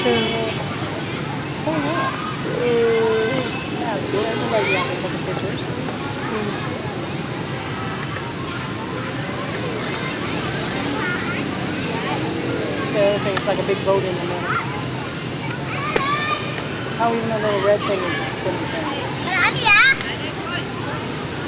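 Adults chatter in a crowd outdoors.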